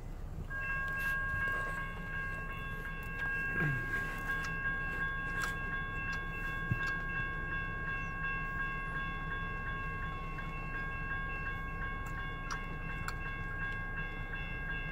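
An electronic railroad crossing bell rings.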